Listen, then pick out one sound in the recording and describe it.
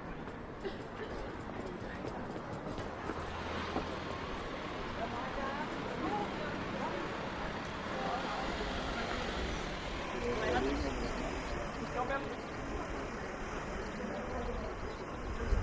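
A busy pedestrian street hums with the murmur of many people talking.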